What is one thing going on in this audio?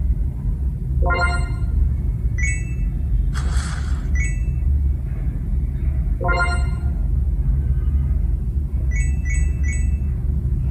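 A mobile game plays short bright chiming tones.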